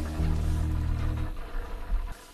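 A television plays low music.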